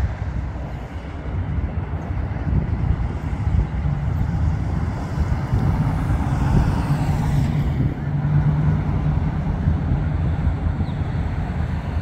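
A hot rod's engine rumbles as it drives past and away.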